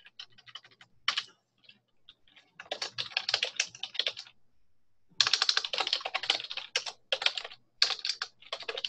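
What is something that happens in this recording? Keys clatter quickly on a keyboard in bursts.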